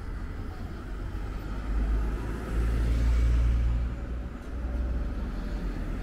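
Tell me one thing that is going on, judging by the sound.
Cars drive by on a street.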